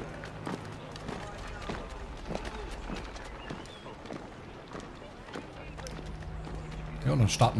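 Footsteps tread on cobblestones at a steady walking pace.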